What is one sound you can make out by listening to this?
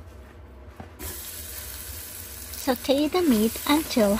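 Sliced meat sizzles in a hot pot.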